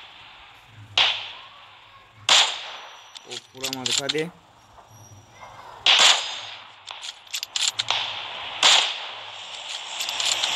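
Sniper rifle shots crack loudly and echo.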